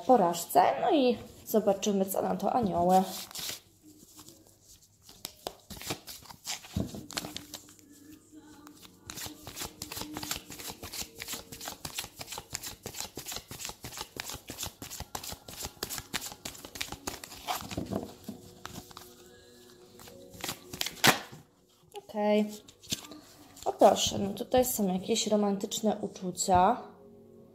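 Fingernails tap and scratch quickly, very close up.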